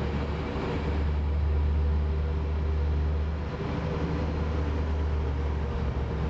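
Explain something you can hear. An ice resurfacing machine's engine hums steadily.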